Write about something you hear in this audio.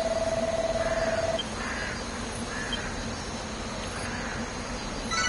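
Soft electronic blips tick in a quick, even rhythm.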